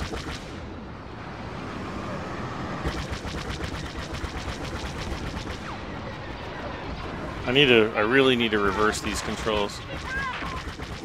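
A starfighter engine roars steadily.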